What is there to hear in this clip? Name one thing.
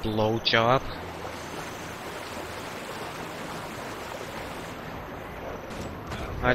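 Water rushes down a waterfall.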